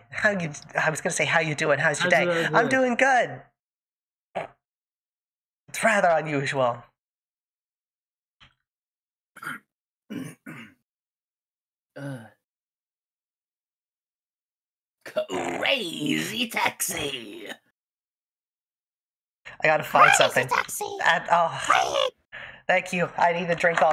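A woman talks with animation close to a microphone, in bursts with pauses.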